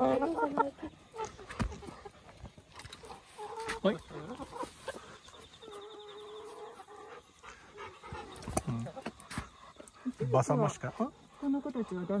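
A hen pecks at food on the ground.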